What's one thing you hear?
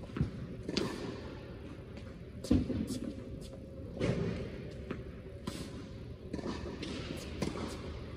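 Tennis balls are struck with rackets, each hit a sharp pop echoing in a large hall.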